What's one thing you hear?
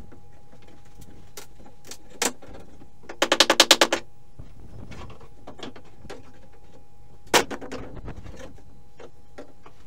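A crowbar knocks and pries against wooden floorboards.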